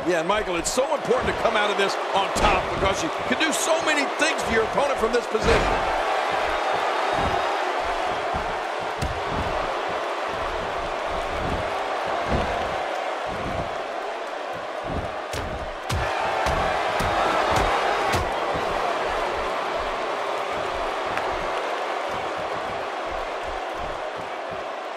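Bodies slam and thud onto a wrestling ring mat.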